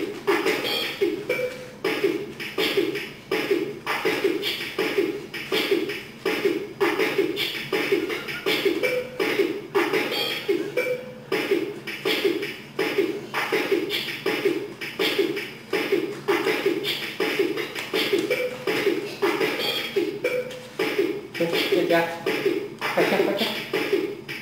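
A young girl sings in a high voice nearby.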